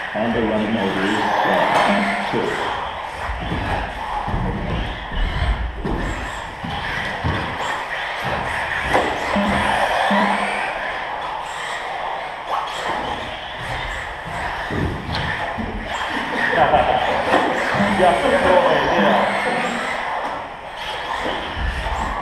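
Small electric model cars whine as they race by in a large echoing hall.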